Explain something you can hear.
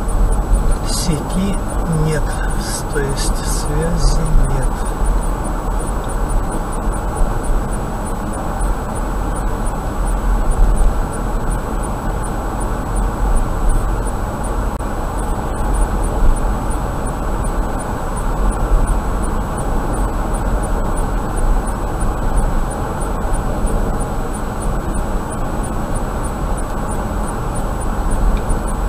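A car drives steadily along a road, its tyres and engine rumbling low from inside the car.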